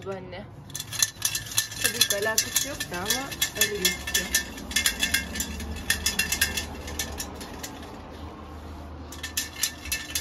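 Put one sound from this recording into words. Seeds rattle and hiss as they are shaken in a metal sieve.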